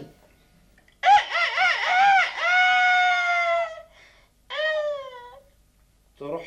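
A woman speaks in a high, pleading voice.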